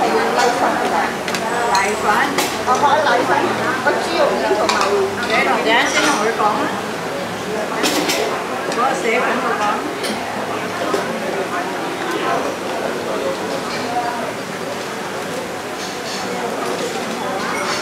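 Several men and women chatter nearby.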